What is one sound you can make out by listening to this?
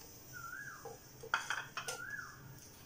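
Tomatoes thud into a metal jar.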